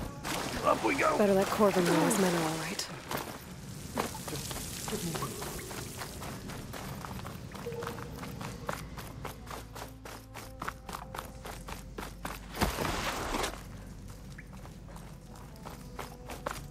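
Footsteps run quickly over gravelly ground.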